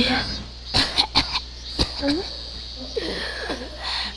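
A young woman speaks calmly and flatly.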